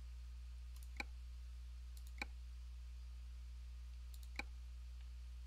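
A mouse button clicks a few times.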